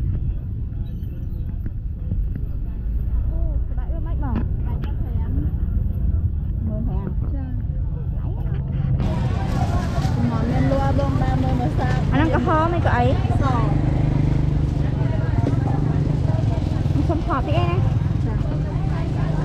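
A busy outdoor market crowd murmurs.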